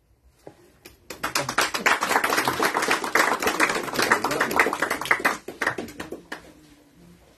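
A small group applauds in a room.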